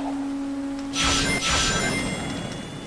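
Bright chimes ring as a character collects rings.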